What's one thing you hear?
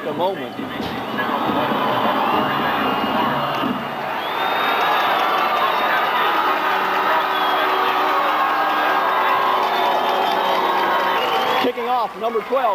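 A large crowd roars and cheers in an open stadium.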